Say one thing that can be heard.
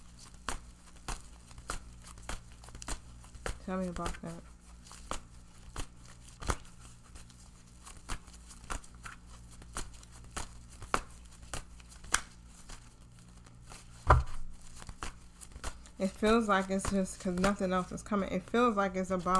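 Crisp paper bills flip and rustle close by.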